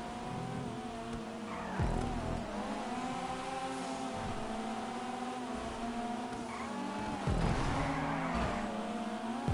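A racing car engine revs high and shifts gears as it speeds along.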